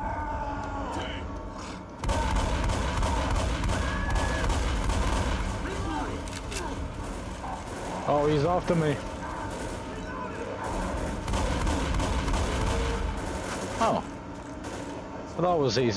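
A monster snarls and roars.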